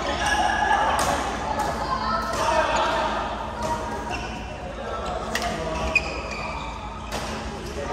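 Shuttlecocks are struck with rackets, with sharp pops echoing in a large hall.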